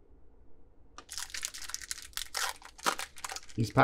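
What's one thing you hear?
A foil pack tears open.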